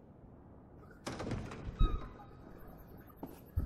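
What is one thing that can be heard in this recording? A metal gate rattles and creaks as it is pushed open.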